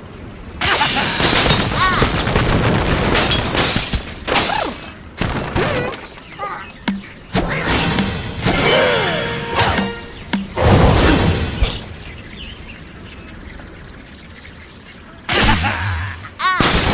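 Cartoon birds squawk and chirp in short bursts.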